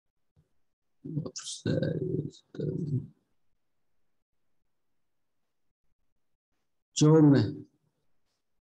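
A young man speaks calmly over an online call, in short bursts.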